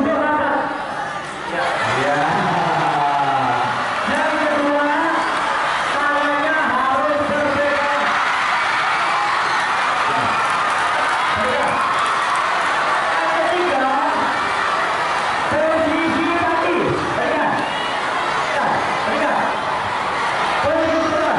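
A large crowd of young people chatters and cheers outdoors.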